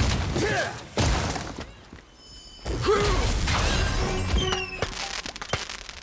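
Lightning strikes crack and boom.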